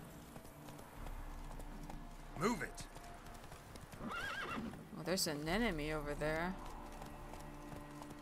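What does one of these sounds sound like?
A horse's hooves clop steadily along a dirt path.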